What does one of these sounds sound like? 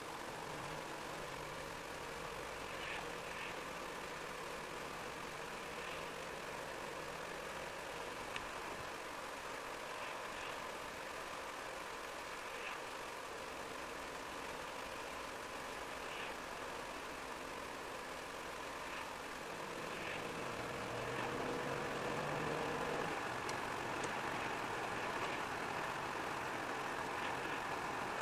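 Tyres hiss steadily on a wet road, heard from inside a car.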